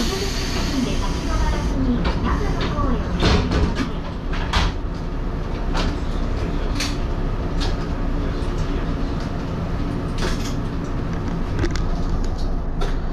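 A train's motor hums low and steadily.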